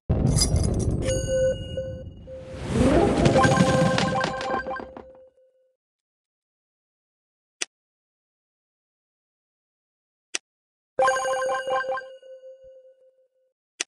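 Coins chime and jingle as they are collected.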